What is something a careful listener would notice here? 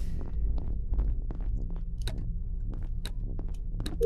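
A small metal panel door clicks open.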